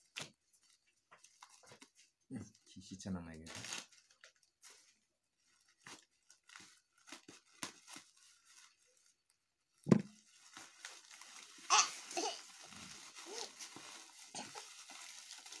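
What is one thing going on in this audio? Bubble wrap crinkles and rustles in hands.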